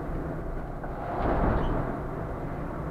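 A truck rushes past in the opposite direction with a brief whoosh.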